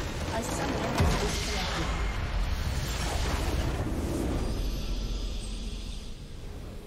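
A large structure in a video game explodes with a deep rumble.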